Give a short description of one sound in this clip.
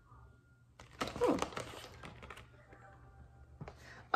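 A paper booklet rustles as its pages are turned.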